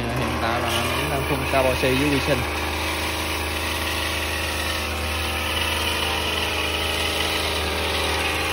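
Water sprays from a hose onto plants with a steady hiss.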